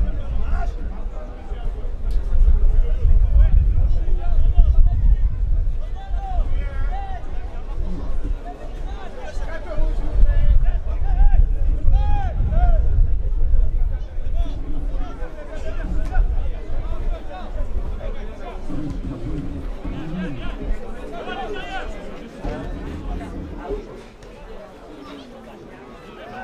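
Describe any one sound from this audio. Male players shout to each other across the pitch.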